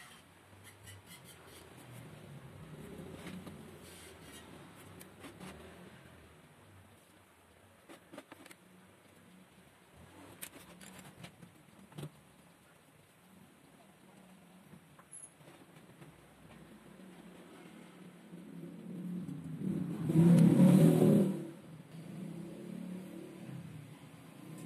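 A pencil scratches lines on wood.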